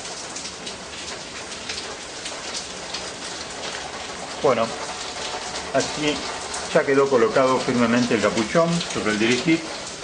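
Fingers fiddle with small metal engine parts, making faint clicks.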